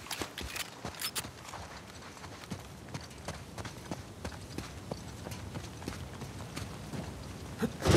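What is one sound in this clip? Footsteps crunch on sand at a run.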